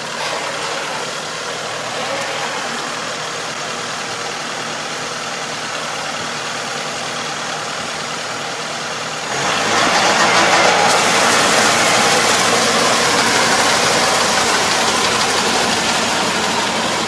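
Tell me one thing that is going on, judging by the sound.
A tractor engine runs steadily nearby.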